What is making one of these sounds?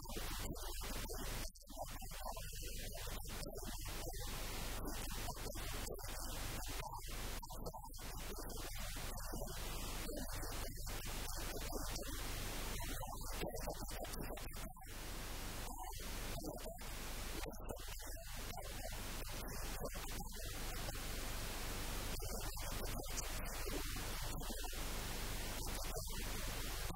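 An elderly man speaks steadily into a close microphone.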